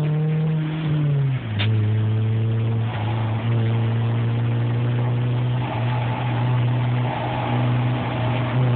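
A car engine hums steadily from inside the car, dropping in pitch as it changes gear.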